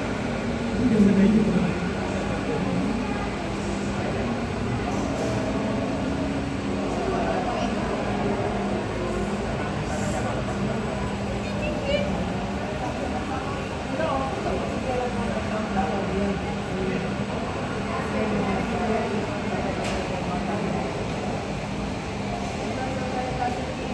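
A jet airliner's engines whine and rumble steadily as it taxis nearby.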